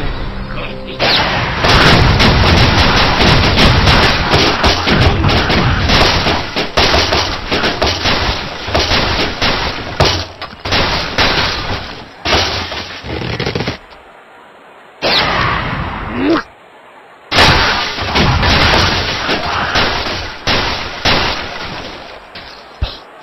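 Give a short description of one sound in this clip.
Wooden blocks crash, splinter and tumble down in a rapid clatter.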